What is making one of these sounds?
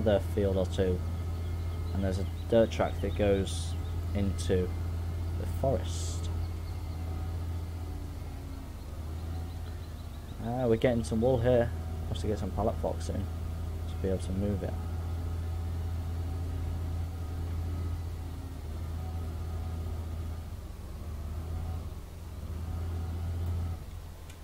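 A loader's diesel engine drones steadily.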